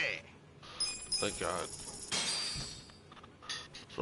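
Menu chimes beep in quick succession.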